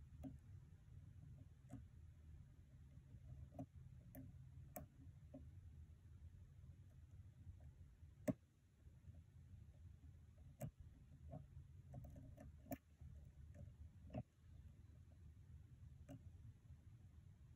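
Metal lock picks click and scrape faintly inside a lock.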